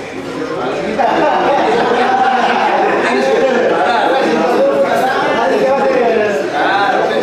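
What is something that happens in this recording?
A man speaks loudly with animation close by.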